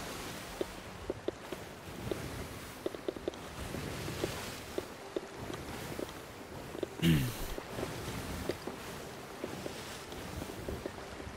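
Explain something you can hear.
Waves crash and churn on rough open water.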